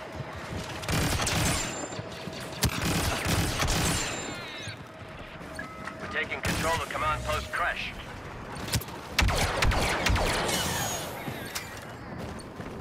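Laser guns fire in sharp bursts.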